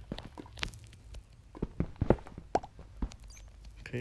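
A pickaxe knocks on stone in short, quick blows.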